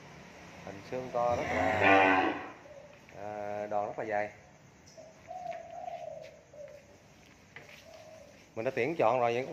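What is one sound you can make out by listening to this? Cattle moo loudly nearby.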